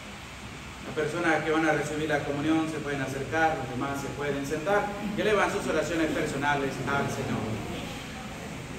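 A man speaks aloud in a calm, praying tone in an echoing room.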